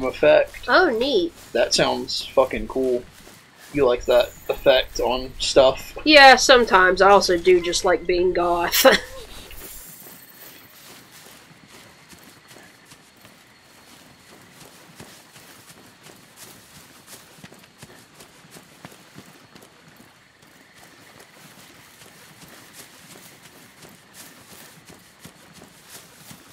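Footsteps crunch softly over rough ground.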